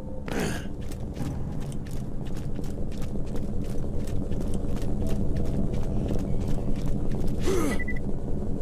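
Footsteps tap quickly and steadily on a hard surface.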